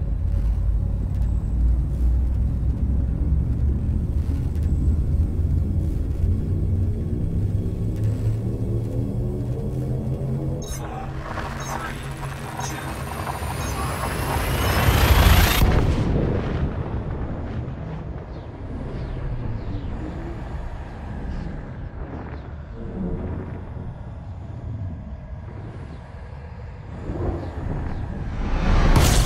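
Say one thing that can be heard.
A spaceship engine hums with a deep steady rumble.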